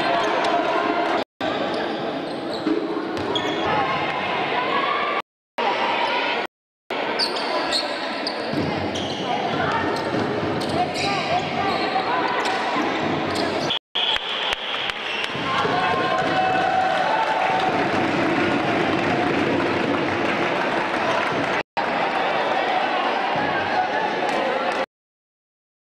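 A crowd cheers and chatters in a large echoing hall.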